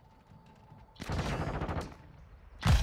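A rifle fires in a short burst.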